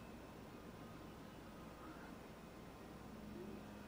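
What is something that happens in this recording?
A paintbrush brushes softly against canvas.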